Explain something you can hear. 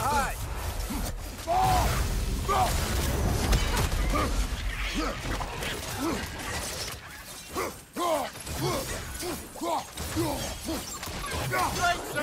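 Heavy blows land with dull thuds and crunches.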